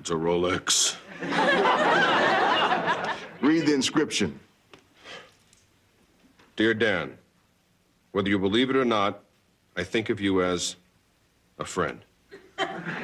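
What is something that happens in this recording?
A man speaks calmly and close by, in short phrases with pauses.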